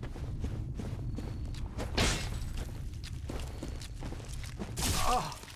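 Armoured footsteps crunch over leafy ground.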